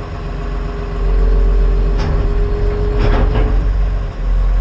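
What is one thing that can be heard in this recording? Hydraulics whine steadily.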